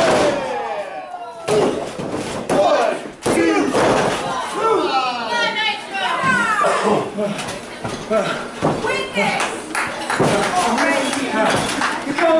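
A small crowd of spectators shouts and cheers.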